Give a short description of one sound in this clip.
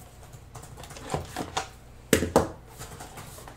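A blade slits a plastic wrapper.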